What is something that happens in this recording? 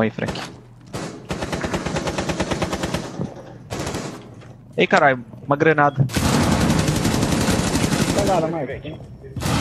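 A rifle fires in rapid bursts, close by.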